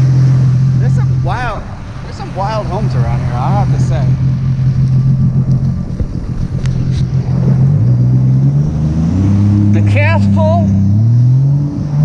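A boat engine hums steadily, shifting pitch now and then.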